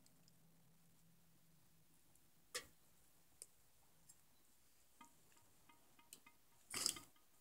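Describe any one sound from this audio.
Water bubbles in a pot.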